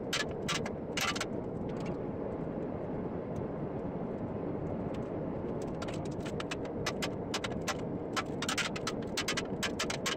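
A gas heater roars steadily.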